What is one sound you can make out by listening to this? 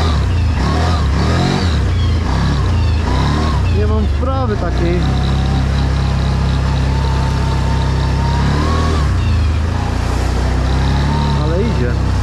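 A V-twin quad bike engine revs and shifts through its gears while riding.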